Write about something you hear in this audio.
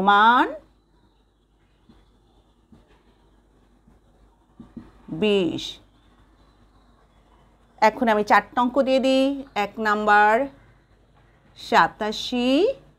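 A woman speaks calmly and clearly, in short phrases with pauses.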